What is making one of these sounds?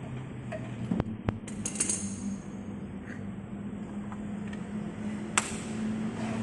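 Metal tools clink against a car wheel.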